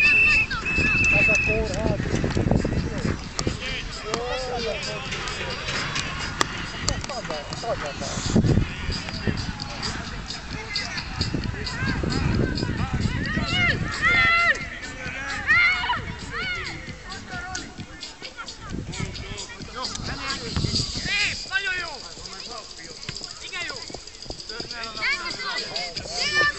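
Young people shout and call to each other outdoors.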